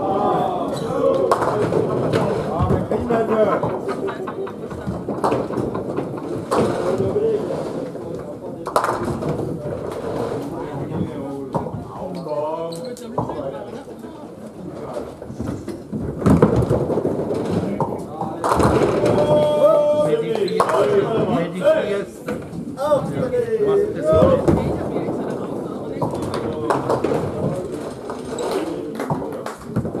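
Heavy balls rumble along wooden lanes in an echoing hall.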